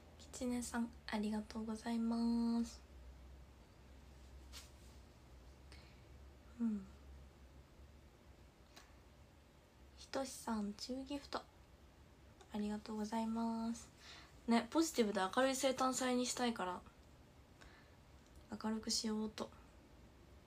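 A young woman speaks softly and close to a microphone, in short bursts with pauses.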